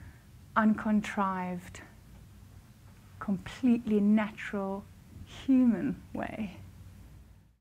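A woman speaks warmly and calmly into a close microphone.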